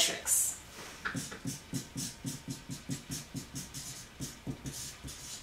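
A marker squeaks in quick, short strokes on paper.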